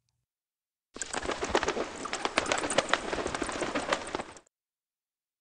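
Doves flap their wings as they fly off.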